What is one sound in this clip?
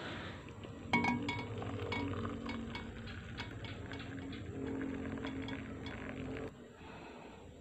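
Hot water pours steadily into a cup.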